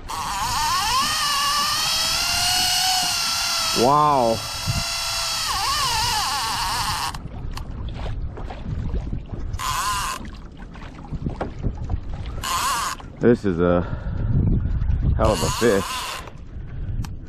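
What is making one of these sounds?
A fishing reel's drag screams as line is pulled out in long bursts.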